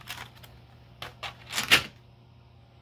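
Pencils rattle and knock as a tray is set down.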